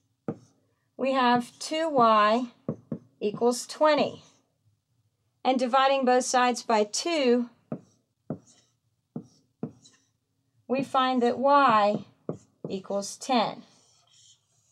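A young woman explains calmly and clearly, close by.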